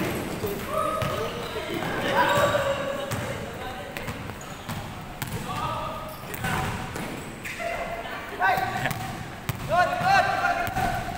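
Sneakers squeak sharply on a hard court in an echoing hall.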